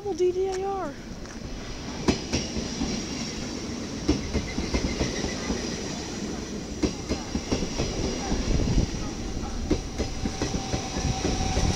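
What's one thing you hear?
A double-deck electric passenger train rolls into a station, wheels clattering over rail joints.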